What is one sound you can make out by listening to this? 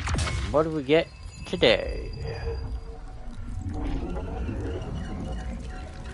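Glassy crystals burst and shatter with a bright, tinkling crackle.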